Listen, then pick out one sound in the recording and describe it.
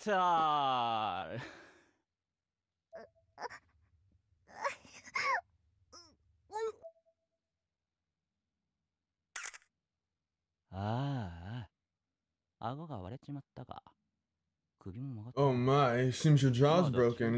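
A young man talks with animation close to a microphone, with pauses between bursts.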